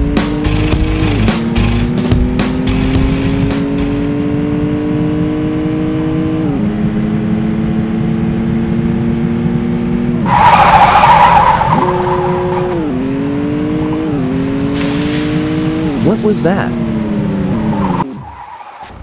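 A car engine hums and climbs in pitch as it shifts up through the gears.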